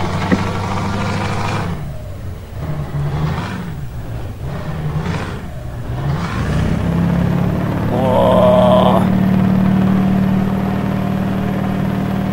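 A truck engine drones steadily, changing pitch as it shifts gears.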